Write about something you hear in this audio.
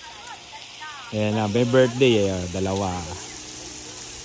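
Women and men chat nearby outdoors.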